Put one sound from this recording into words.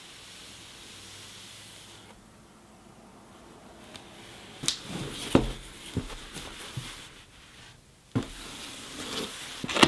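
Gloved hands tap and rub against a cardboard box.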